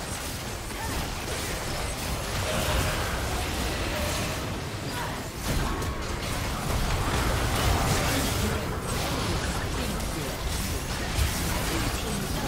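Game spell effects whoosh, crackle and clash in a busy fight.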